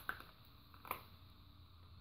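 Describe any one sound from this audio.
A handgun clicks as it is drawn from a holster.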